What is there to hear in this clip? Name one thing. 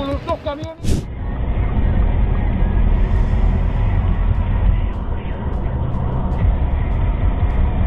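Tyres rumble steadily on a highway as a car drives along.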